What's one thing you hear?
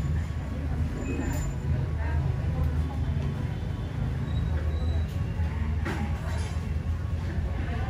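A middle-aged woman speaks quietly nearby.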